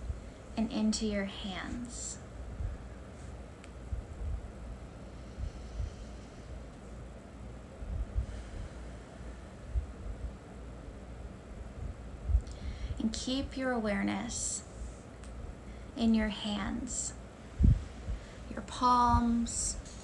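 A woman speaks calmly and softly close to the microphone, in short phrases with long pauses.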